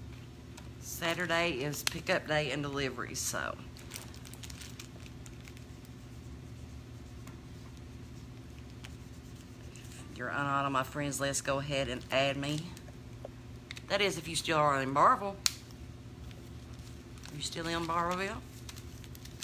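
A middle-aged woman talks calmly, close to the microphone, in short bursts with pauses.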